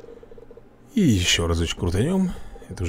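Bright chimes and a jingle play as a prize reel spins.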